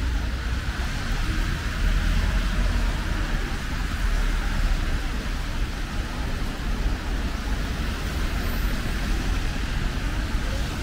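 Rain falls steadily on a wet street outdoors.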